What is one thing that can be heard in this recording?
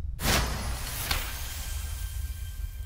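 A bright chime rings out.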